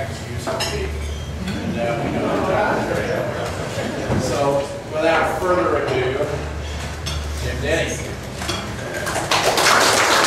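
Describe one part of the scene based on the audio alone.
A man speaks through a microphone to a room, calmly and clearly.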